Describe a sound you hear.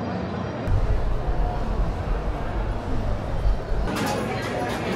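A crowd of people murmurs and chatters in a large echoing space.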